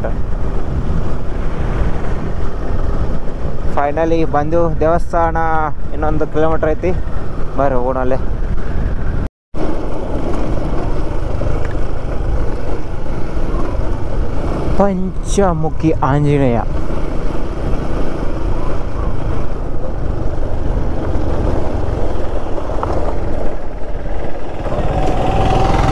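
Wind rushes and buffets loudly past a moving motorcycle.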